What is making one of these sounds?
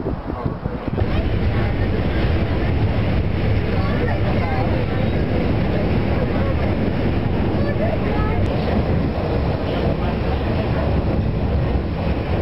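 A train rumbles loudly along the tracks.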